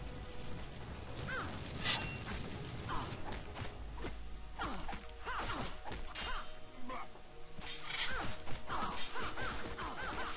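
Weapons clash in a battle.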